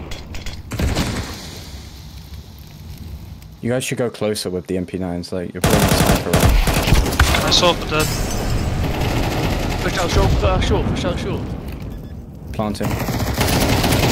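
A fire burst roars and crackles.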